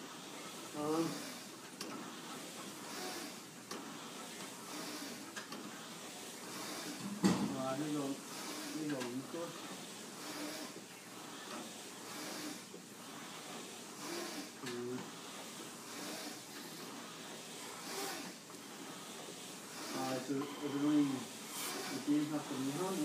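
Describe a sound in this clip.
A young man grunts and breathes hard with effort nearby.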